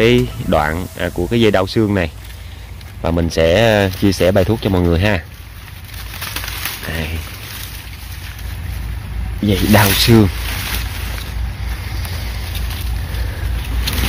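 Leaves rustle as a hand brushes through them.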